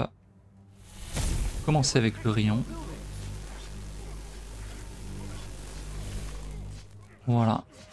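A magic blast crackles and booms.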